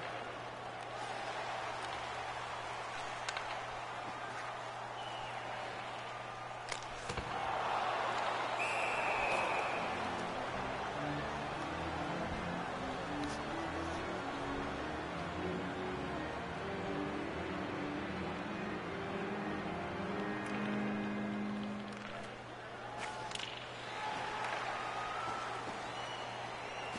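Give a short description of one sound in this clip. A large arena crowd murmurs and cheers steadily.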